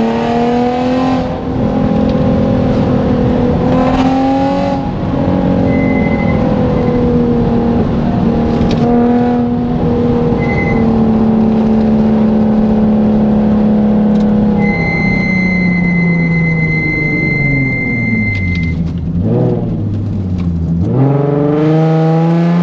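A car engine roars loudly from inside the car, its pitch dropping and climbing again.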